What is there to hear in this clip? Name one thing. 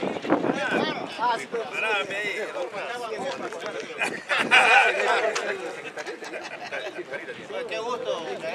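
Several men talk and laugh together nearby, outdoors.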